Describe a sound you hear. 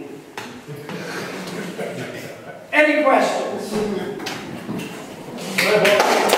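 A middle-aged man speaks with animation in a large echoing room.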